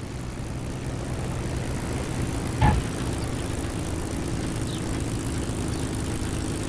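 A propeller engine idles with a steady, rumbling drone.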